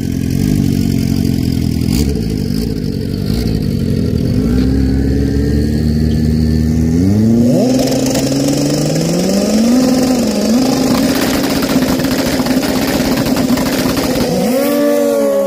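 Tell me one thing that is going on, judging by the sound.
A motorcycle engine idles and revs loudly close by.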